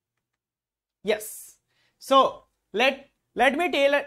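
A young man speaks into a microphone in short bursts.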